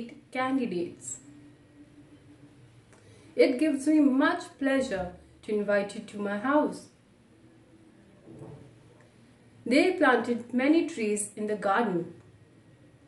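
A young woman speaks calmly and clearly into a nearby microphone, with pauses between phrases.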